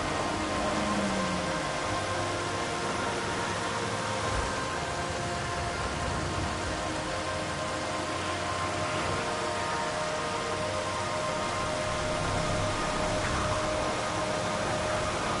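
A truck engine hums steadily as it drives along a road.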